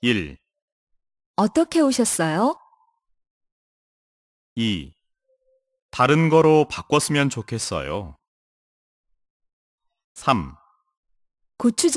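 A young man speaks calmly into a microphone in short phrases with pauses.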